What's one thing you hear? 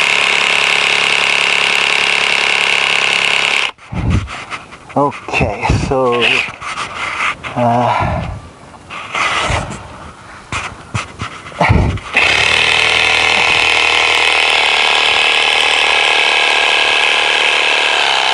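A chainsaw runs loudly at high speed, stops, then starts again.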